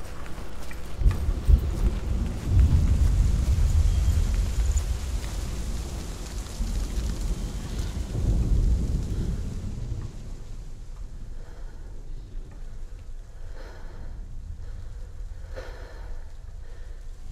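A large fire roars and crackles in the distance.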